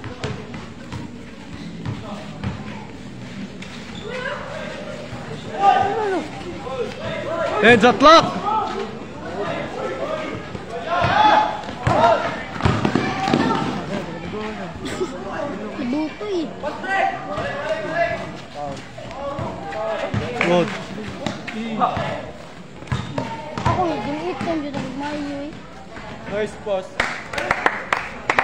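Young men shout and call out to each other during a basketball game.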